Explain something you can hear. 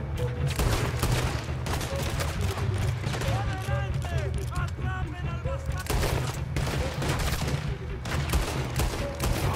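Gunshots fire in rapid bursts nearby.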